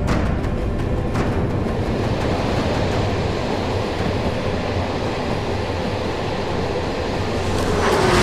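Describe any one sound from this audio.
A tram rumbles past on its rails.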